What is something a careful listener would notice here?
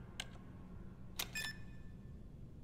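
Electronic keypad buttons beep as they are pressed.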